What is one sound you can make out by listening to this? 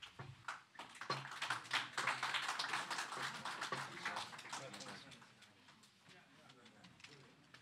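A crowd of people chatters in a room.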